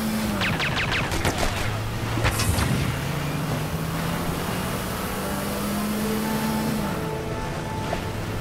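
A boat engine hums steadily as it speeds over water.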